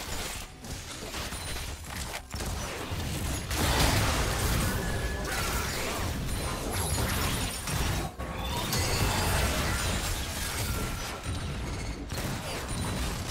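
Game spell effects whoosh and blast in a busy fight.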